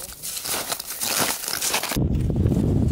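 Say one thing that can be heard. Snowshoes crunch through snow.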